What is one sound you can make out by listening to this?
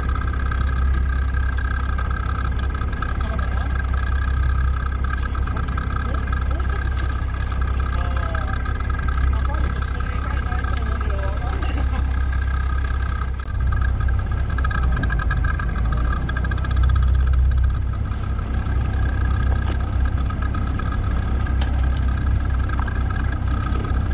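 A fishing boat's engine idles with a low, steady rumble.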